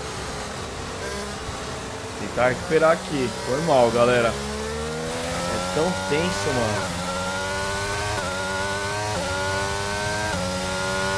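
A racing car engine roars, climbing in pitch and dropping briefly as it shifts gears.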